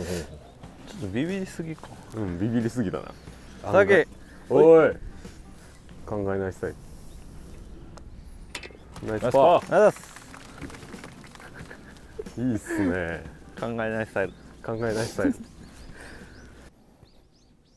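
Men talk and call out casually outdoors.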